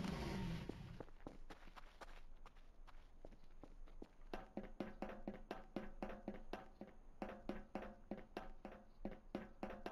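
Footsteps clank on metal stairs.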